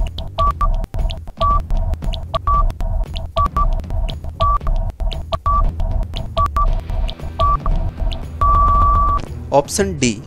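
A countdown timer ticks with short repeated beeps.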